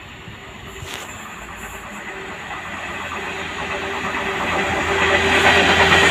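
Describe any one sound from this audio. Wheels rumble and squeal on the rails as a freight train draws near.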